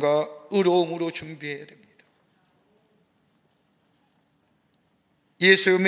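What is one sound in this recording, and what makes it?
A middle-aged man speaks with animation into a microphone, pausing briefly.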